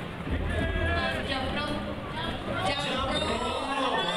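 A man speaks into a microphone over a loudspeaker.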